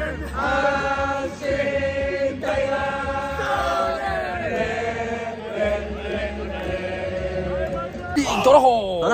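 A large crowd sings a chant loudly together in a big stadium.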